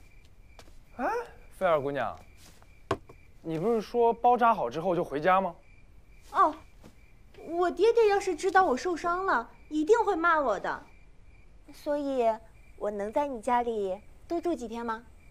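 A young man speaks with surprise, close by.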